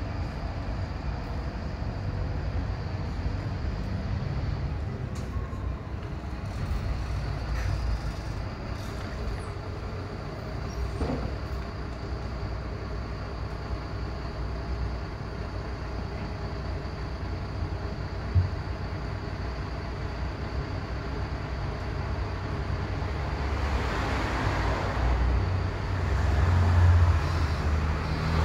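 A bus engine idles with a low, steady rumble nearby.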